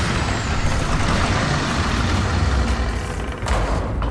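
Heavy doors creak open.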